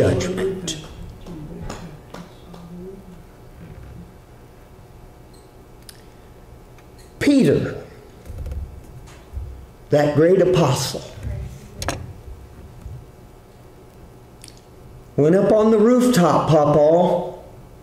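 An older man preaches with animation into a microphone, with long pauses between phrases.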